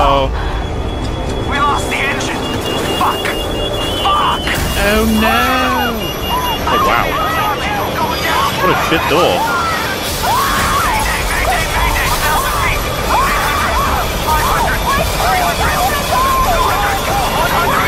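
A woman shouts in panic over a headset radio.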